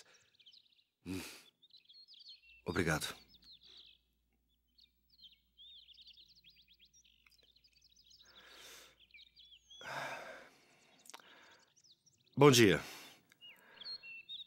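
A young man speaks quietly and haltingly.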